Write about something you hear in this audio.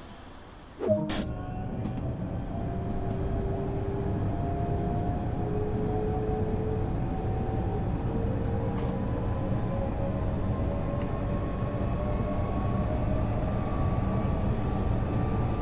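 An electric train motor whines steadily higher in pitch as the train speeds up.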